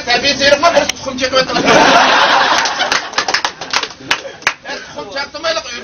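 A group of young men laugh loudly together.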